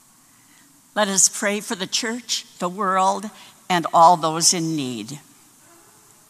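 A woman speaks slowly and solemnly into a microphone in an echoing hall.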